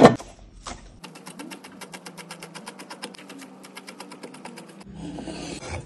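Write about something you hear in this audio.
A knife chops herbs quickly on a wooden board.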